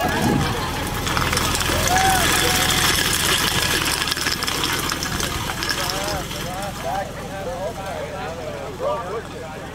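Cans dragged behind a car rattle and scrape along the ground.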